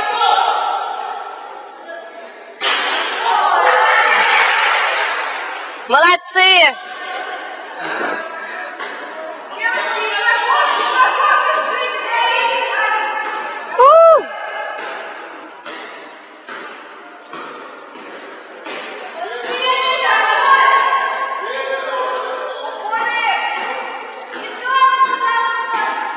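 Young women players call out to each other in an echoing gym.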